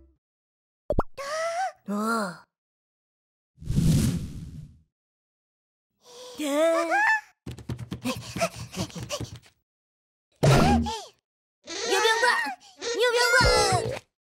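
A small cartoon creature babbles in a squeaky, high voice.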